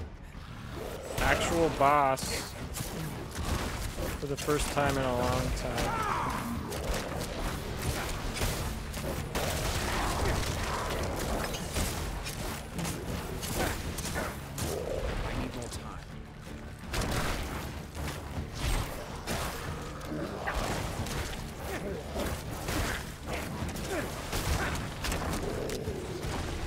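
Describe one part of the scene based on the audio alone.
Spells and blows crash and clatter in a fight.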